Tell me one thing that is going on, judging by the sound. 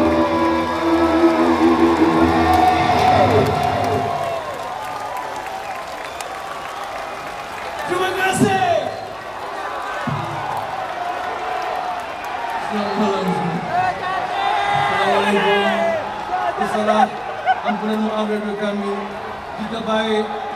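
A male singer sings through a microphone.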